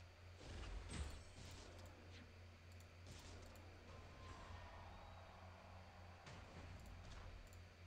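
Video game sound effects whoosh and chime.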